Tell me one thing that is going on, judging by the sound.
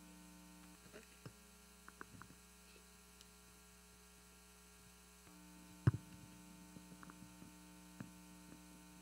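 Heels click on a hard stage floor.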